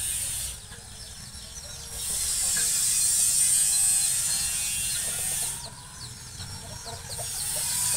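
Small birds chirp nearby.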